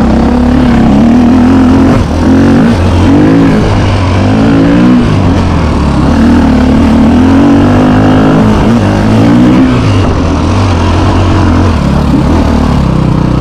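A dirt bike engine revs loudly up close, rising and falling as it rides over rough ground.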